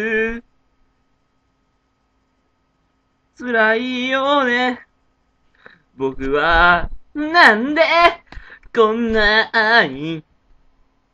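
A young man sings close to the microphone in short, wavering phrases.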